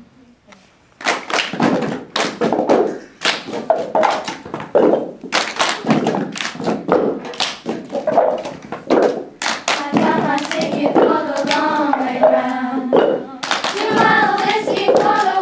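Plastic cups tap and thump on a hard floor in a quick rhythm.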